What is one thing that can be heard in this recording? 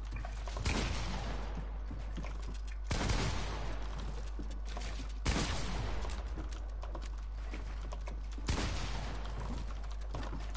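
Loud gunshots boom every few seconds, each followed by a ringing echo.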